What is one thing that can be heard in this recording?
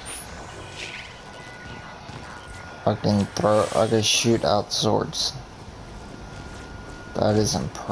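Electric energy crackles and whooshes.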